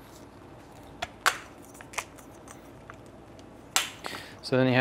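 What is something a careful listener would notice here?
A gun's parts click and clack as a man handles it.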